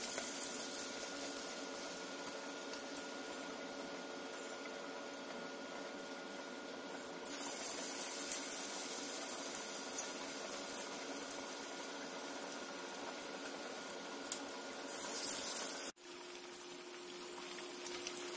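Hot oil sizzles steadily in a pan.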